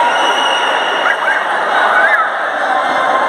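Shoes squeak on the court floor.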